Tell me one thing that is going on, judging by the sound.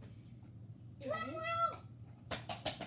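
A young boy speaks playfully in a silly high voice close to the microphone.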